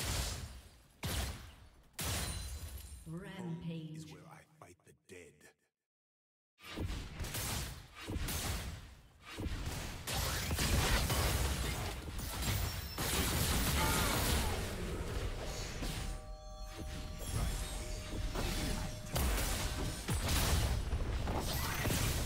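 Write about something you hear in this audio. Game spell effects whoosh, crackle and clash in a fast fight.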